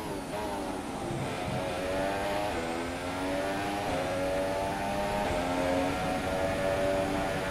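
A racing car engine screams at high revs, rising in pitch and dropping sharply at each gear change.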